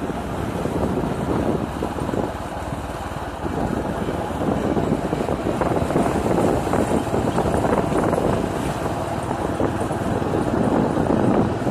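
A motorbike engine hums steadily while riding along.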